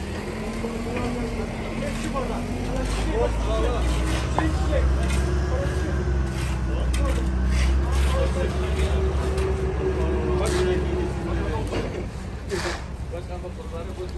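Shovels and rakes scrape across wet concrete.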